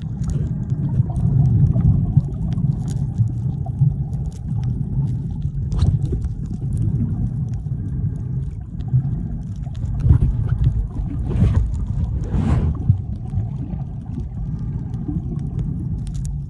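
Water rushes and rumbles in a low, muffled wash underwater.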